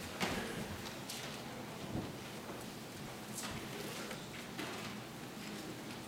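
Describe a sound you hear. An elderly man speaks quietly and solemnly in a reverberant hall.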